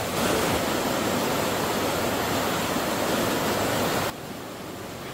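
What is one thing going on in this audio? Rushing river water churns loudly over rapids.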